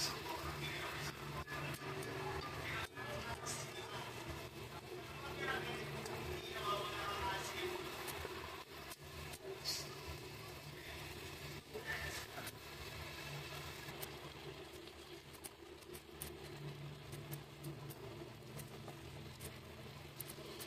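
Meat sizzles and crackles in a hot pan.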